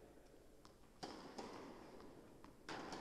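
A tennis ball bounces on a hard court, echoing in a large hall.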